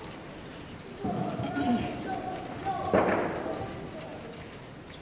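A school band plays a short passage in a large echoing hall.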